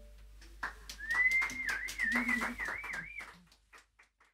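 A woman sings a high, wavering melody.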